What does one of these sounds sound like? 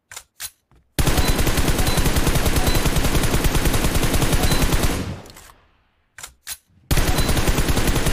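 Rapid gunfire rattles in fast bursts.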